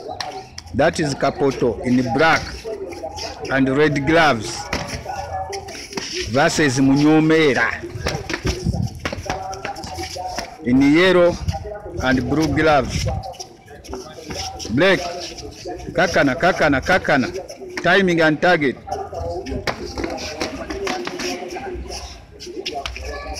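Boxing gloves thump against punch mitts.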